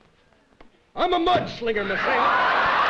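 A woman cries out in surprise.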